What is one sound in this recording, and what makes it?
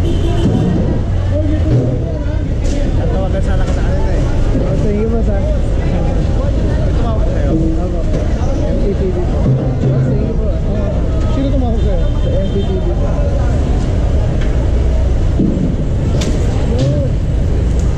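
Traffic rumbles steadily nearby.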